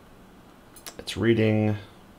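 A small plastic button clicks.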